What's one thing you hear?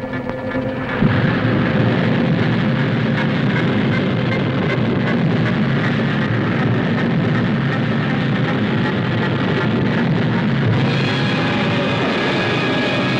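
A rocket engine roars at liftoff.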